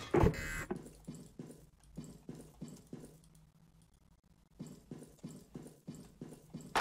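Quick footsteps patter on a metal floor.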